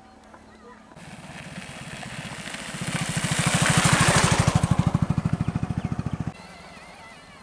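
A motorcycle approaches and roars past close by.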